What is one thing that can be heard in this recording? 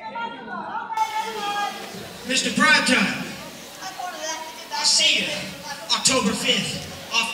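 A young man shouts with excitement into a microphone over loudspeakers.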